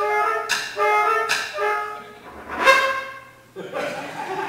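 A French horn plays along and ends on a loud held note.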